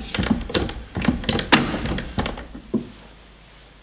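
Wooden clunks and knocks sound sharply and quickly.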